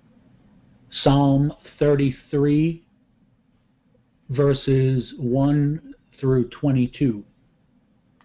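An elderly man speaks calmly over a microphone on an online call.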